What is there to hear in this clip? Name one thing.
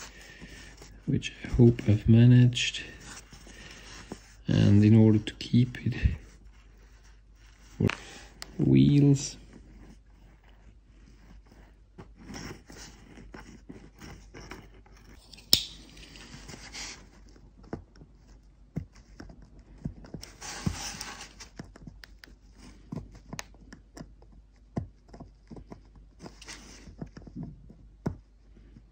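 Small metal parts click and tap softly as fingers handle them.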